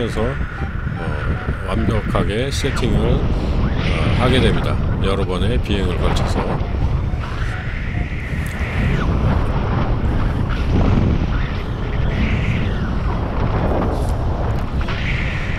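Strong wind rushes and buffets loudly outdoors.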